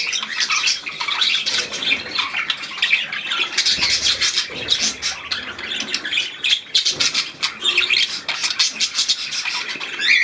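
Small finches chirp and cheep rapidly throughout.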